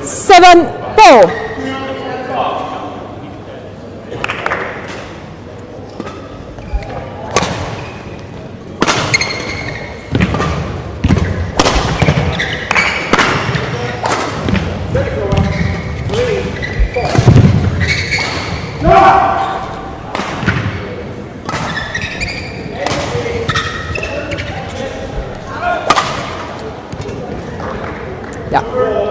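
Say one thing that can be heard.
Badminton rackets strike shuttlecocks with sharp pops in a large echoing hall.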